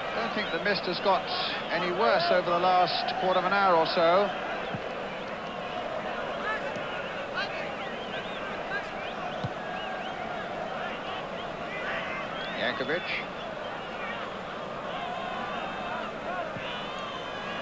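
A large crowd murmurs and roars in an open stadium.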